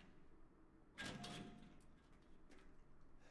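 A locked metal drawer rattles.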